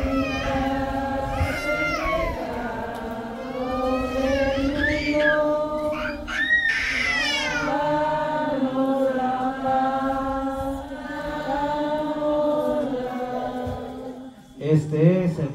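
A crowd of people sings together outdoors.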